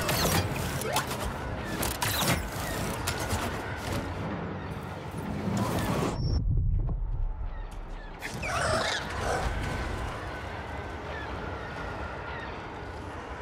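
Laser blasts fire and zip past.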